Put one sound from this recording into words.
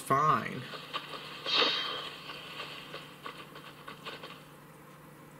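Gunshots and effects from a game play through a small phone speaker.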